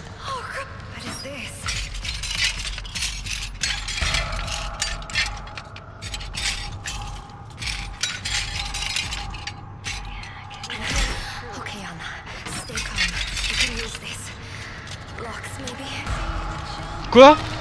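Small metal parts click and rattle under busy hands.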